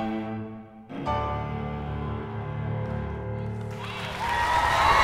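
A piano plays chords.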